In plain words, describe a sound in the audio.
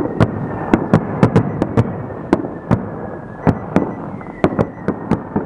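Fireworks crackle and pop sharply, again and again.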